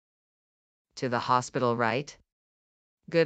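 Another young girl asks a question in a synthetic voice.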